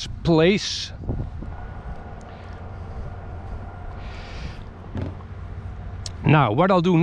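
Wind rumbles against the microphone outdoors.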